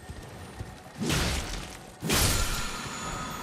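A heavy body lands hard on rocks with a loud rushing thud.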